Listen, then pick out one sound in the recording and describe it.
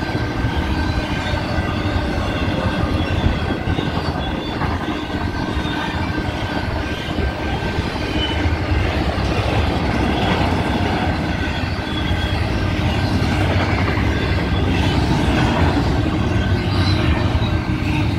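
A freight train rumbles and clatters steadily past, close by.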